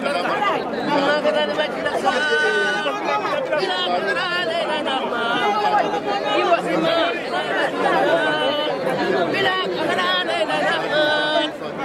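An elderly man greets people warmly.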